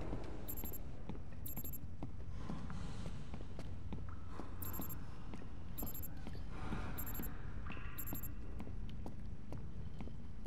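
Footsteps thud steadily on wooden boards.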